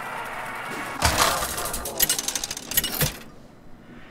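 A game's reel clatters and clunks to a stop.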